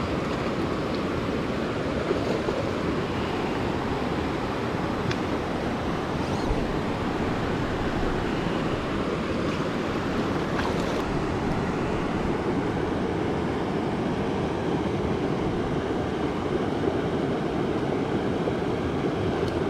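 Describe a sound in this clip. A river rushes steadily over rocks nearby.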